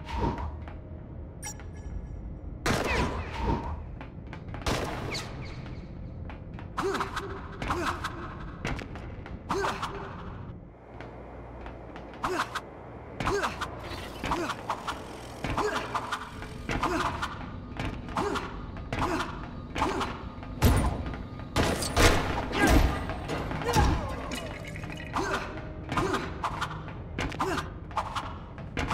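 Footsteps patter quickly across a metal floor.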